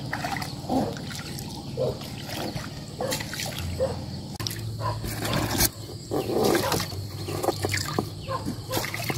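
A fishing line rubs and clicks as it is pulled in by hand.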